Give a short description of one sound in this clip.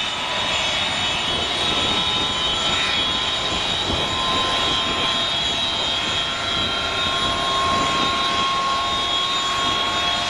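A jet aircraft's engines roar and whine loudly at idle.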